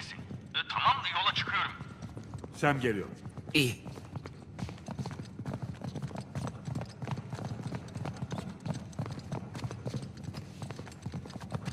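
Footsteps hurry down wooden stairs.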